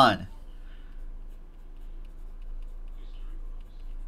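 A pen scratches on card.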